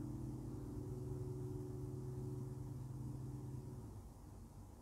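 Loudspeakers play a deep, steady hum that suddenly stops.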